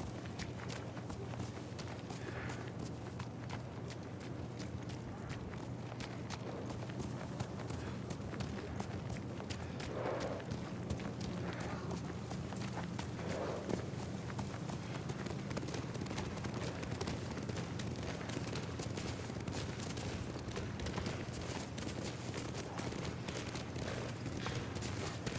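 Horses' hooves thud on a dirt path at a steady trot and gallop.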